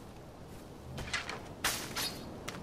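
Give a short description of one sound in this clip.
A hand brushes through leaves with a sharp rustle.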